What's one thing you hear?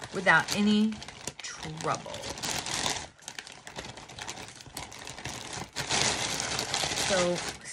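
Scissors snip through plastic.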